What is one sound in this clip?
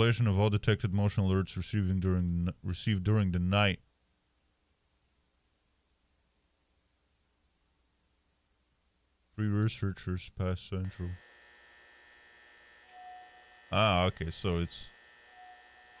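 A man talks into a close microphone, in short bursts.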